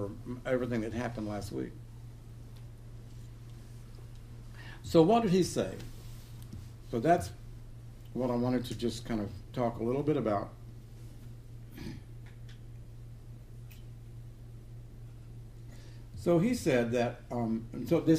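An elderly man speaks calmly and slowly, with long pauses.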